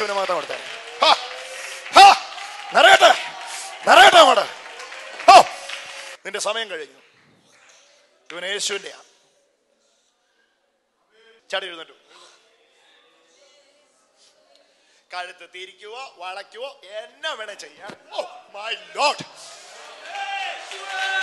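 A man shouts loudly into a microphone in an echoing hall.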